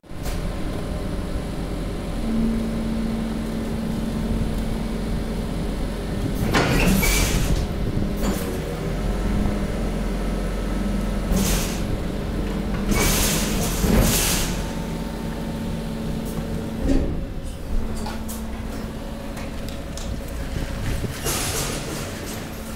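A conveyor machine hums and rumbles steadily.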